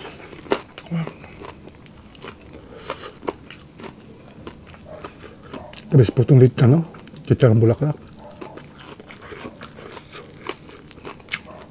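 Crispy fried food crackles as fingers tear it apart.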